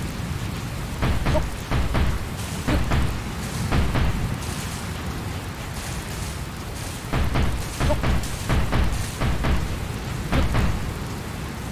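Blocks thud into place one after another.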